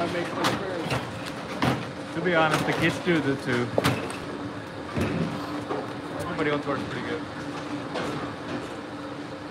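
Bowling balls clunk against each other on a ball return.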